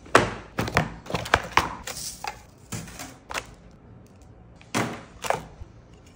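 A cardboard box is opened and rustles as things are taken out.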